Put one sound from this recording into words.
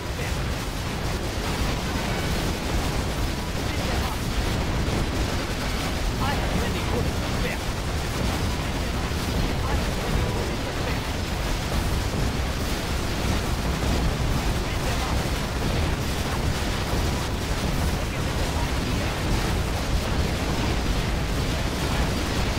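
Gunfire crackles rapidly amid the fighting.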